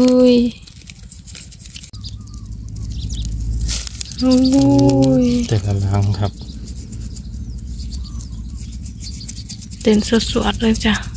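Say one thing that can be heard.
Small live shrimp patter and flick into a plastic bucket from a net.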